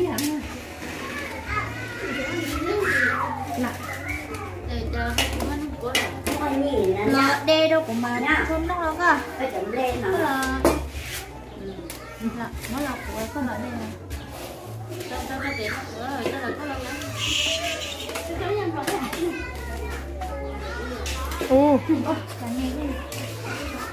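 Young women talk with animation nearby.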